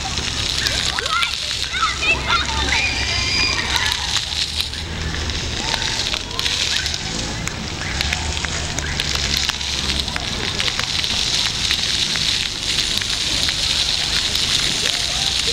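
Fountain jets splash and hiss steadily into water outdoors.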